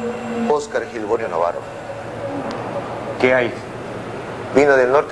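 A man speaks in short, broken phrases nearby.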